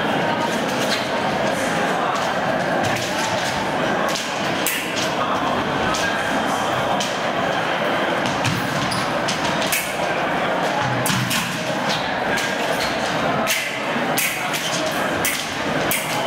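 Fencers' shoes stamp and squeak on a hard floor.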